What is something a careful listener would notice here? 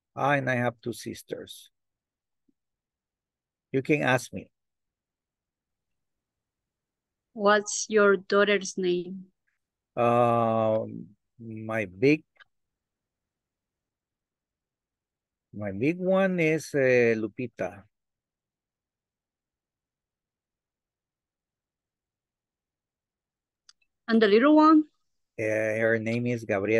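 A man speaks in short bursts with pauses, heard through an online call.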